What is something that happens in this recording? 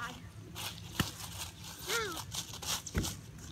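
A ball thumps against a girl's hands.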